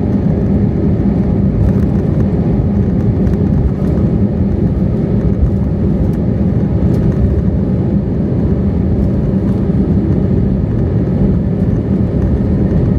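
Landing gear wheels rumble and thump over the runway.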